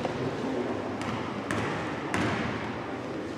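Basketballs bounce on a wooden floor.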